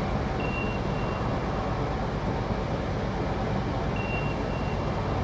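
A low engine drones steadily.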